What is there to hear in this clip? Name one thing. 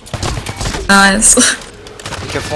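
A rifle fires in a video game.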